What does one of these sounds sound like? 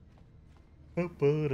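A man speaks up close into a microphone.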